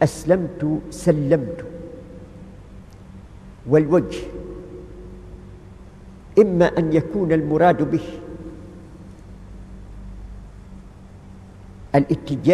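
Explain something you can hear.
An elderly man speaks slowly in short phrases, heard through a microphone in an echoing room.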